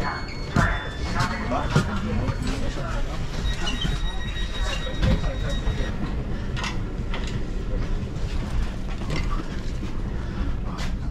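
A train carriage rumbles and rattles while riding.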